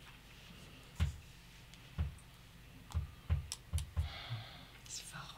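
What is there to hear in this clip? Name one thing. Game pieces click and tap on a table.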